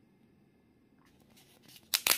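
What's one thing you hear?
A crispy snack crackles as a hand lifts it.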